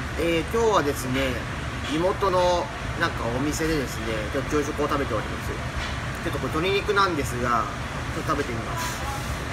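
A young man talks with animation, close to the microphone.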